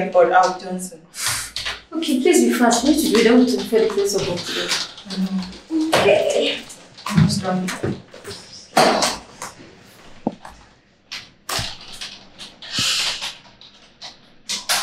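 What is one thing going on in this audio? Fingers tap on a laptop keyboard.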